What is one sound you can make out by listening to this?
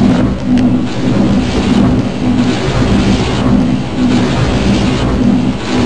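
Flames roar loudly in bursts.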